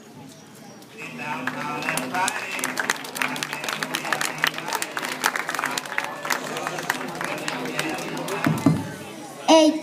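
A crowd of children claps and cheers.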